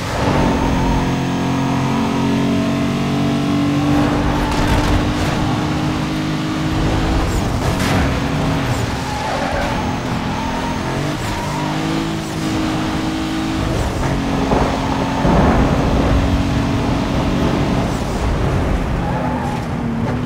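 A car engine roars at high speed, rising and falling as gears shift.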